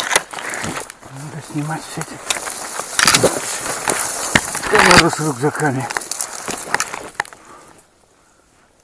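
Dry branches and brush rustle and scrape close by.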